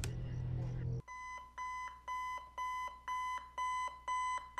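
An electronic alarm beeps in steady, evenly spaced bursts.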